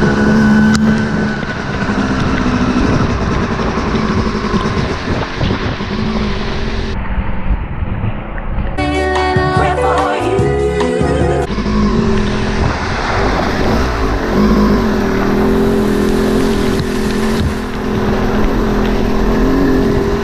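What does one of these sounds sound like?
A pickup truck drives along a muddy dirt track.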